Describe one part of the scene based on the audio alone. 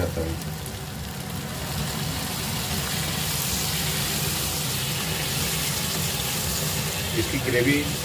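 Water pours into a hot pan with a hiss.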